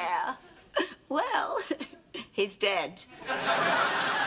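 A middle-aged woman speaks cheerfully, close by.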